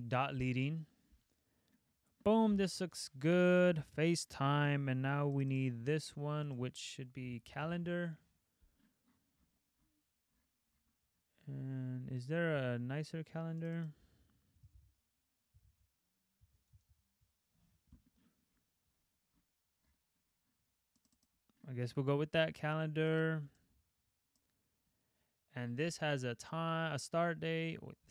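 A young man speaks calmly and closely into a microphone, in bursts with pauses.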